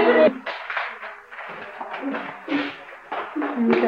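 Feet thump and shuffle on a hard floor.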